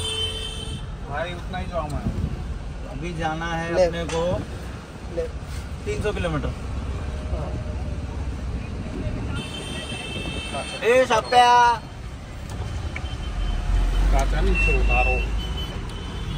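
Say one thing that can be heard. A young man talks nearby in a casual voice.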